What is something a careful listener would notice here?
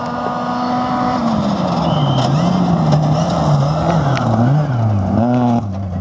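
Tyres crunch and spray gravel as a car speeds past.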